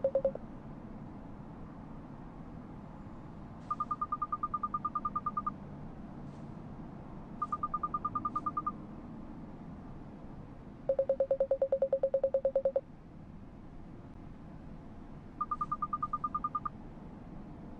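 Quick bursts of electronic blips chatter, some high and some lower.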